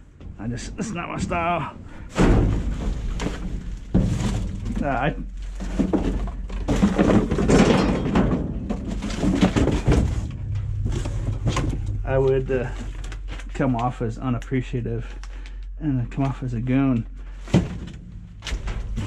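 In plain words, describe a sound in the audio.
Plastic bags and cardboard rustle and crinkle as a hand rummages through rubbish.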